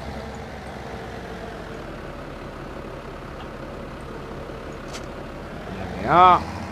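A tractor engine idles steadily.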